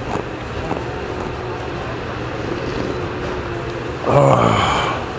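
A man slurps soup from a bowl.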